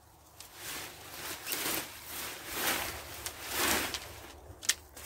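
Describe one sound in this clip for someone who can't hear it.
Leafy plant stems rustle as a hand pulls them.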